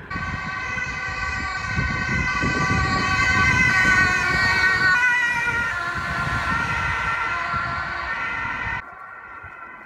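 An ambulance siren wails along the street.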